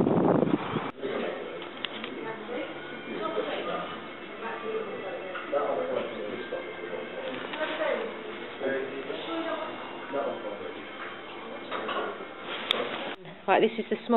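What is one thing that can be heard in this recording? Men talk quietly at a distance in a large room.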